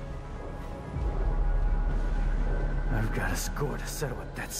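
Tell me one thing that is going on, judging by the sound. A huge monster rumbles with a deep growl.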